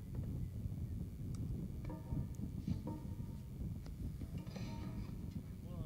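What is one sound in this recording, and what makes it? A resonator guitar is strummed and picked, close by.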